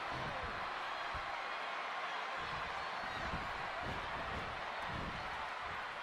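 Wrestlers' bodies thud on the ring mat.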